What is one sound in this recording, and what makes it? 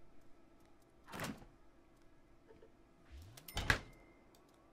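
A fridge door thumps shut.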